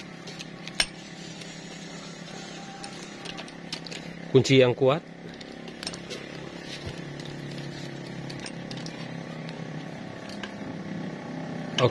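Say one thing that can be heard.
A screwdriver clicks and scrapes against metal engine parts.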